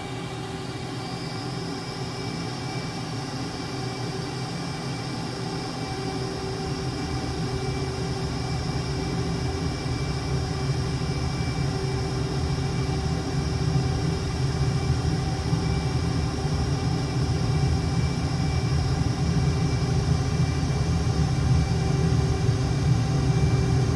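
A high engine whine rises and holds.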